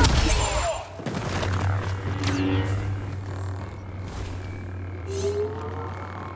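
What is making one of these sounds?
A lightsaber swings with a whooshing buzz.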